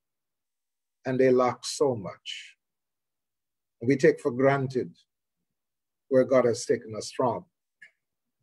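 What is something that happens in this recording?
An elderly man speaks calmly in short phrases over an online call.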